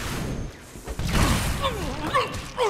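An explosion booms and roars with fire.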